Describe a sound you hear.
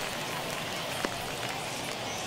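A baseball smacks into a glove.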